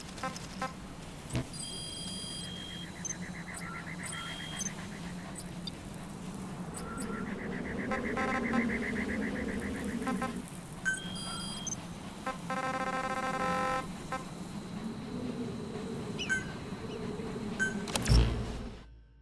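Game menu beeps and clicks sound as options are chosen.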